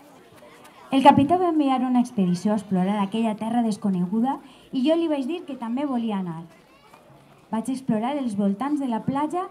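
A woman speaks into a microphone over loudspeakers, reading out calmly.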